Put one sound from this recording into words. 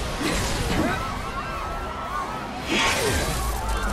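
A sword swooshes through the air.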